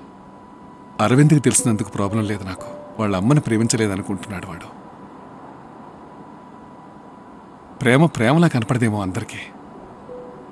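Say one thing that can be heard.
An elderly man speaks quietly and earnestly close by.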